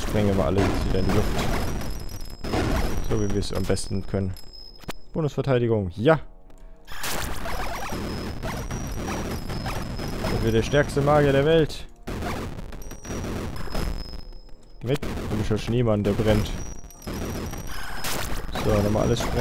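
Video game gunfire and explosions crackle rapidly.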